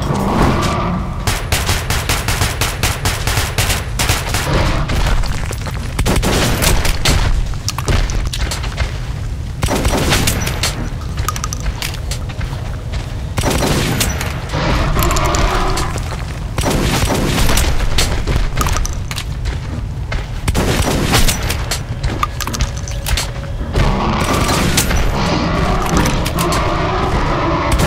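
A large beast growls and roars.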